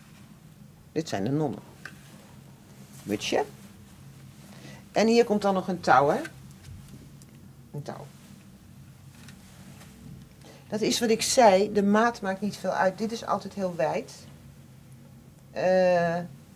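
An older woman speaks calmly and close by.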